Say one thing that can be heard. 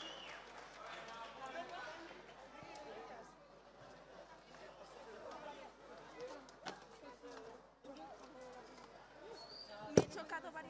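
Men and women chatter in a crowd nearby.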